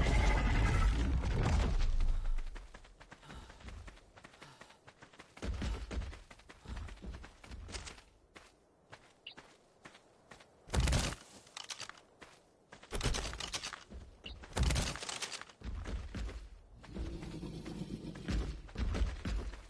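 Footsteps run through long grass.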